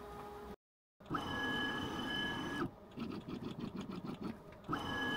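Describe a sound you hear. Machine motors whir as the tool head moves.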